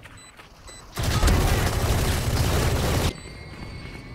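An automatic rifle fires a long, loud, rapid burst close by.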